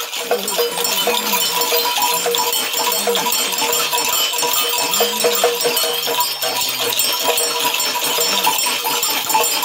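Small metal pieces on a rattle stick jingle and clatter.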